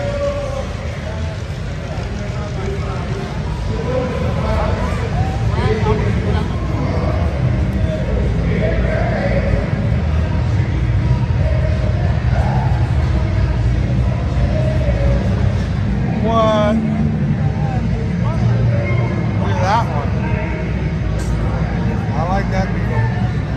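A crowd of people chatters nearby in a large echoing hall.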